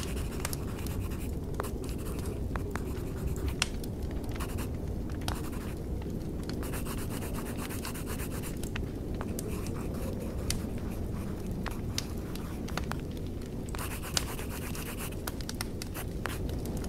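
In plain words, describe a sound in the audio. Fires crackle and pop steadily in braziers.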